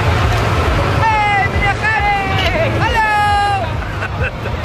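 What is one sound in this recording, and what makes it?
A young woman calls out loudly and cheerfully nearby.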